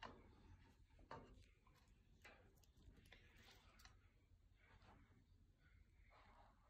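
A cat's paw taps and rattles the metal bars of a birdcage.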